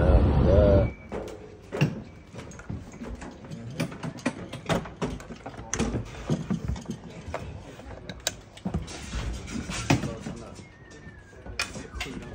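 Metal stage gear clanks and knocks as a man handles it.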